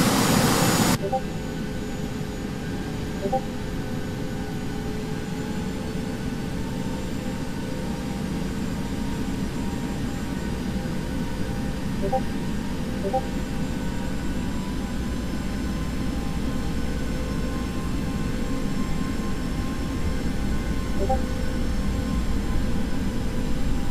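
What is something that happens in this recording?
A jet engine hums steadily from inside a cockpit, slowly growing louder.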